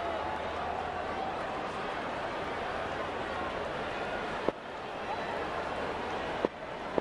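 A large crowd murmurs and cheers steadily in a stadium.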